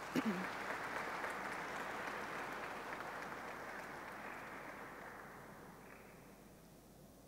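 An audience applauds in a large hall and the applause slowly fades.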